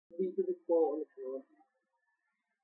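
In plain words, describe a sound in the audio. A young man speaks briefly and casually into a microphone.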